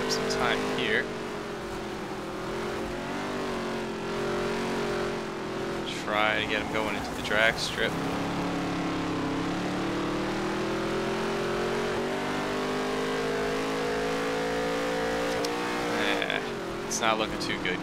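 A race car engine roars steadily, its pitch rising and falling as the car speeds up and slows down.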